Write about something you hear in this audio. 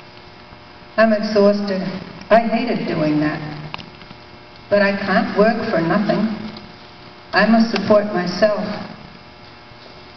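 An elderly woman speaks calmly into a microphone in an echoing hall.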